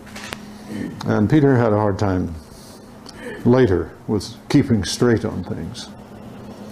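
An elderly man speaks calmly to a room.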